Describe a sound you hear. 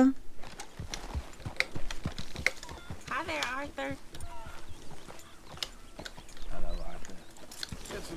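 A horse walks slowly on soft ground, its hooves thudding.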